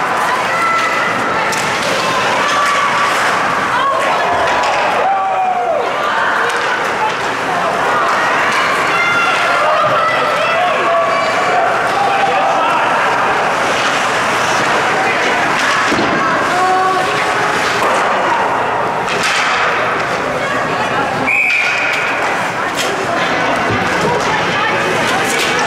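A crowd of spectators chatters and cheers loudly in an echoing rink.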